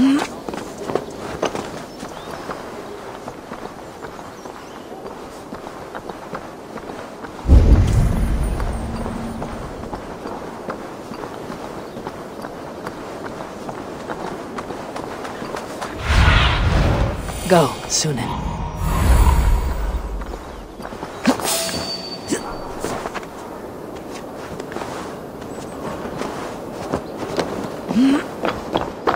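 Soft footsteps crunch on roof tiles.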